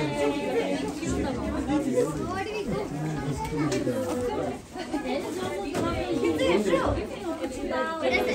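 Young women talk and laugh nearby with animation.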